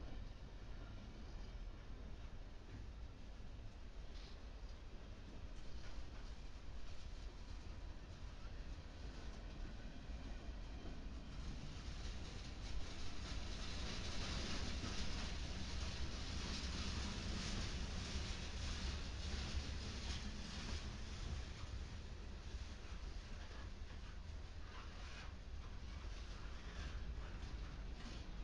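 Steel wheels clatter and click over rail joints.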